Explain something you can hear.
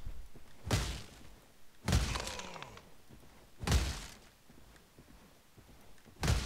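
Loud gunshots boom one after another, each with a ringing tail.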